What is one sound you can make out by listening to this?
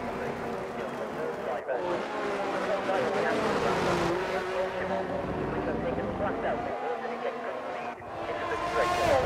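Racing car engines scream and whine as they change pitch through the gears.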